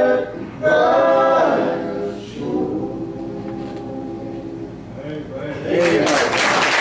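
Men sing together through a microphone in a room with echo.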